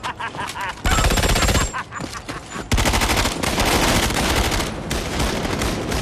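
An automatic rifle fires bursts.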